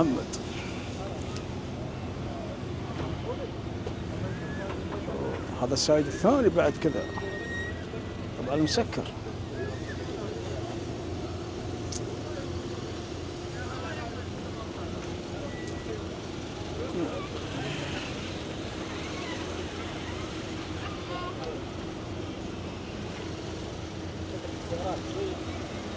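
Men talk and shout loudly nearby outdoors.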